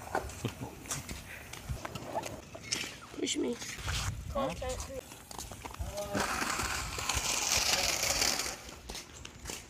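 Scooter wheels roll over concrete.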